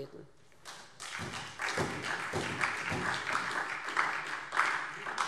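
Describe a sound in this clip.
A middle-aged woman speaks steadily into a microphone in a large room.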